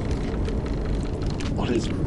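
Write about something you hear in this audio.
A fire crackles and pops close by.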